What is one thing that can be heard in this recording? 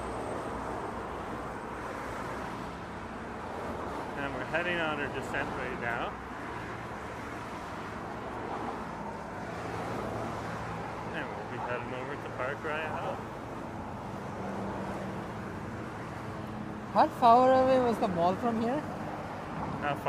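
Traffic rumbles past steadily close by.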